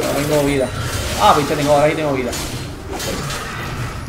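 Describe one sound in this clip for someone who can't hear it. Blows and spell effects crackle as a fight goes on.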